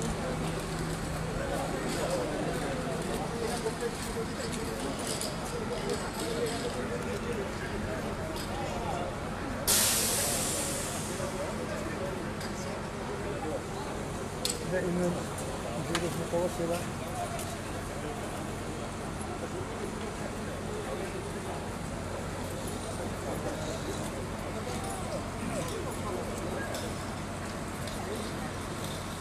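A fire engine's motor idles with a steady low hum.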